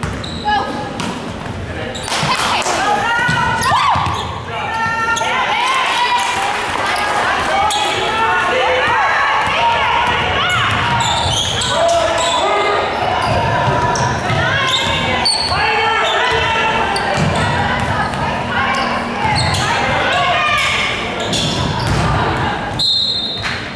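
Young women call out to each other during play.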